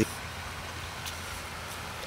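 A fish splashes in shallow water.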